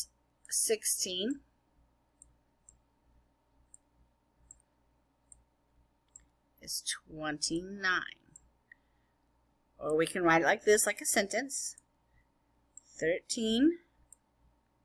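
A woman speaks calmly through a microphone in short phrases, with pauses.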